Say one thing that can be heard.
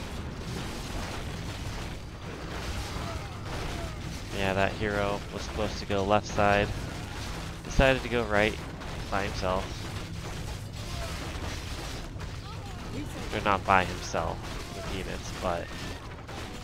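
Swords clash and clang in a busy battle.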